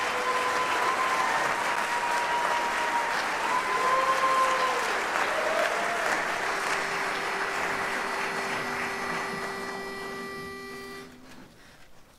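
A large male choir sings in harmony in an echoing hall, ending on a long held chord.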